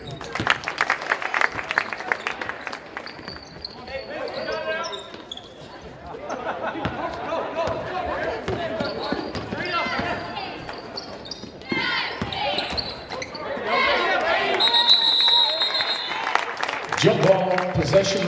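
A crowd cheers and shouts in a large echoing gym.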